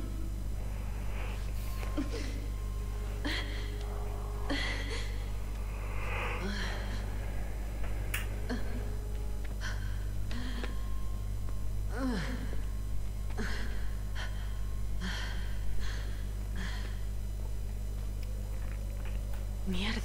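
A young woman gasps and whimpers in pain, close by.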